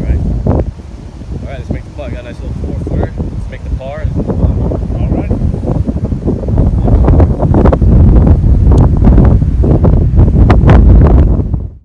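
Wind rumbles across the microphone outdoors, growing stronger.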